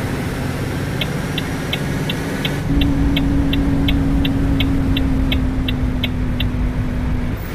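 A truck's turn signal ticks at an even pace.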